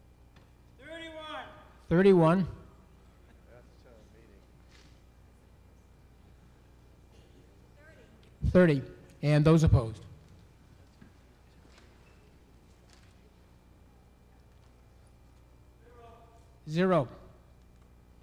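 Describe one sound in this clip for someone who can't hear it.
A man speaks a few short phrases through a microphone in a large hall.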